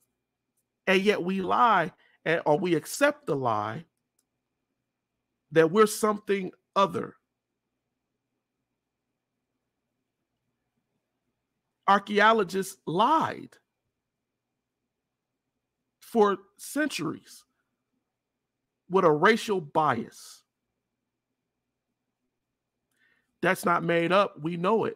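A man speaks with animation into a close microphone, in short bursts with pauses.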